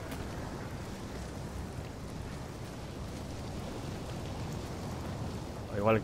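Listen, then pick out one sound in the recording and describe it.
Molten lava rumbles and bubbles low and steadily.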